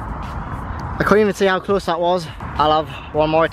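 A young man talks excitedly, close up.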